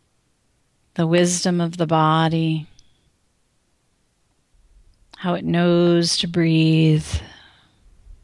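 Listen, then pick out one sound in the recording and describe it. A woman speaks slowly in a long, drawn-out voice, heard over an online call.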